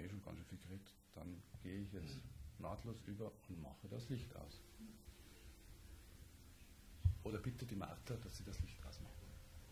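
An older man speaks calmly and softly nearby.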